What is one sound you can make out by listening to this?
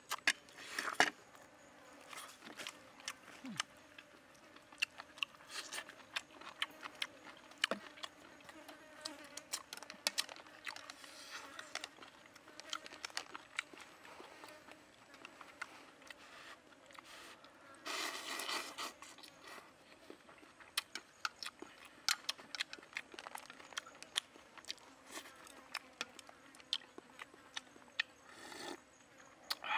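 A man chews food noisily up close.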